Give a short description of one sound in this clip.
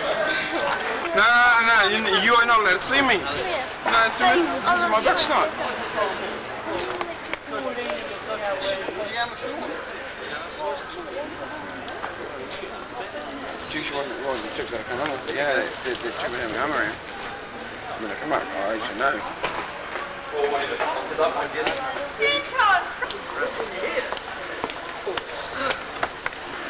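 Several men talk and call out close by.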